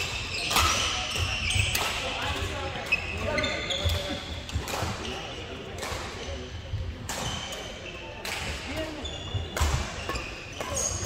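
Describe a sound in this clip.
Players' voices murmur and call out across the hall.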